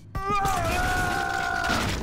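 A heavy gun fires in loud blasts.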